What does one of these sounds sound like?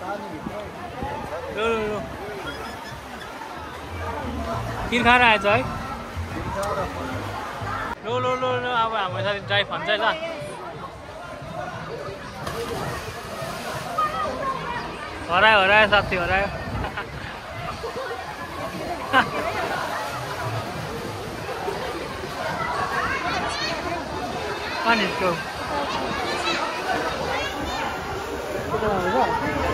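Children and adults shout and chatter in the background in an echoing space.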